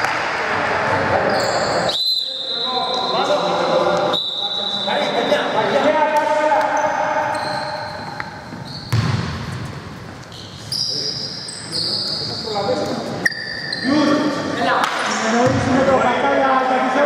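A basketball thumps on the floor.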